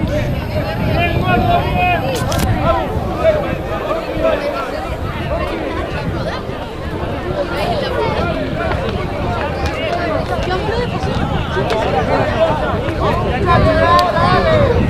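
Young men shout calls to each other across an open field.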